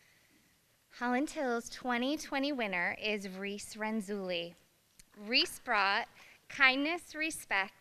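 A young woman speaks into a microphone over a loudspeaker, in a large echoing hall.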